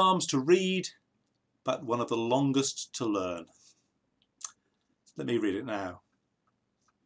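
An older man speaks calmly and close to a microphone, in short phrases with pauses.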